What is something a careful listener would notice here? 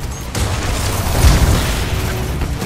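A large robot smashes into metal with a heavy crash.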